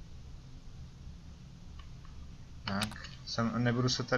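A keypad button clicks with a short beep.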